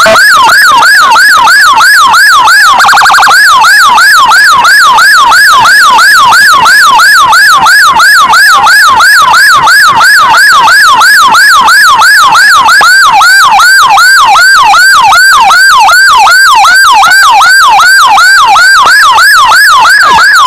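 A police siren wails in fast, repeating whoops close by.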